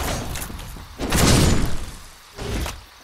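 A heavy armoured body crashes to the ground with a loud rumbling burst.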